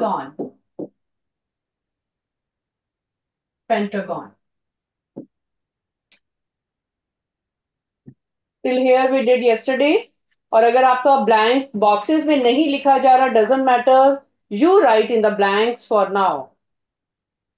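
A woman speaks calmly, as if teaching, through a microphone.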